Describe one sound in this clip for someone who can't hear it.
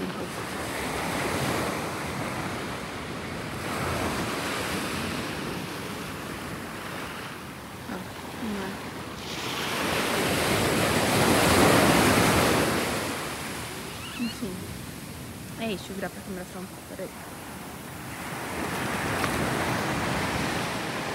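Small waves wash and break on a shore in swelling surges.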